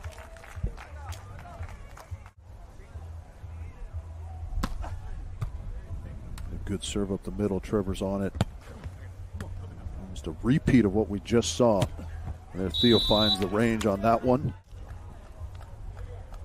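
A volleyball is struck with dull thuds.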